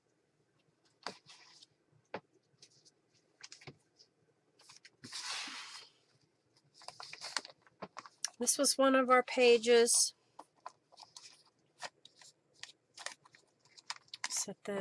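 Paper cards rustle and slide as hands handle them.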